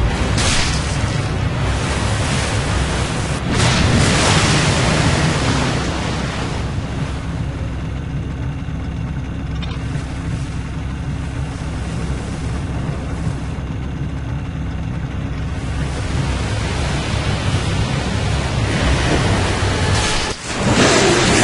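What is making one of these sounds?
A motorboat engine drones over the water.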